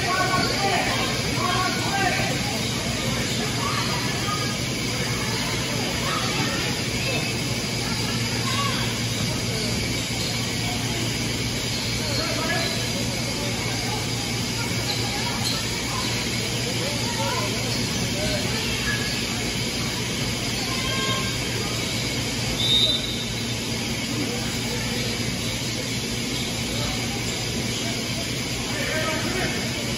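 Sneakers squeak on a hard court in a large echoing hall.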